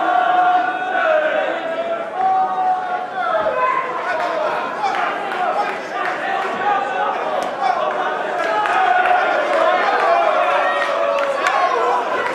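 Boxing gloves thud against a body in quick punches.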